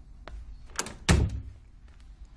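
A door bangs shut.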